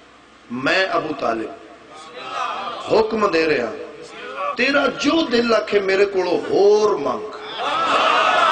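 A young man sings out loudly and with feeling through a microphone.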